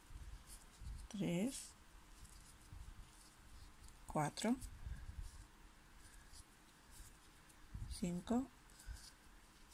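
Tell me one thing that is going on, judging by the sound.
Yarn rustles softly as a crochet hook pulls it through.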